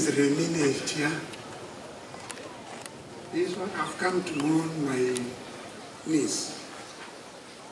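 An elderly man speaks calmly into a microphone outdoors.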